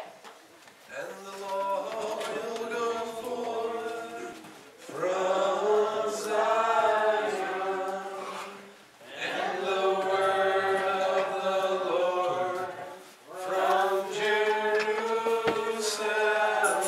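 A congregation sings along in an echoing hall.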